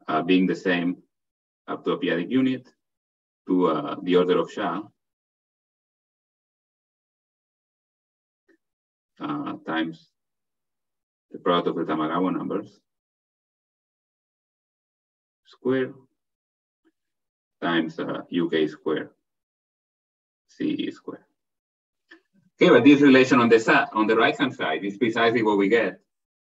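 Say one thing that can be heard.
A man lectures calmly in pauses, heard through an online call.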